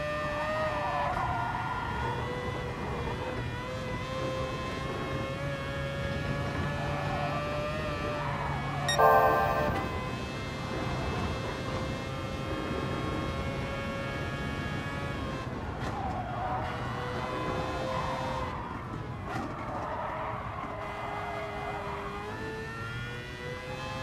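A racing car engine roars at high revs, shifting gears as it speeds up and slows for bends.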